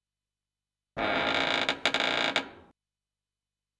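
A heavy door creaks slowly open.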